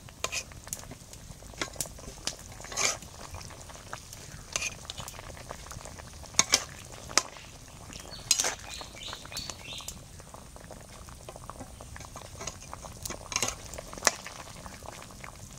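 A metal spatula scrapes and clinks against a wok.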